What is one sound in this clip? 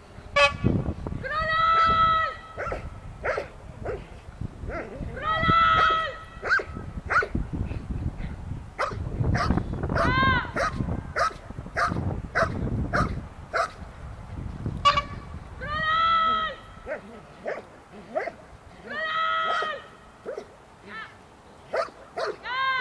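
A dog growls while tugging.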